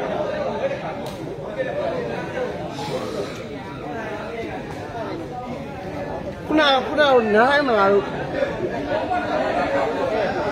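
A crowd of men chatters throughout.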